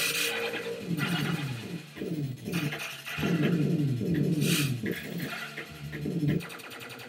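Arcade laser shots zap in quick, falling chirps.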